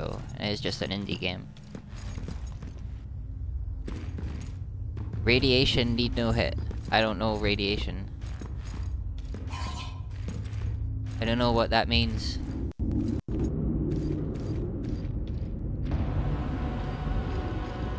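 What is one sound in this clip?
Heavy footsteps thud on stone steps.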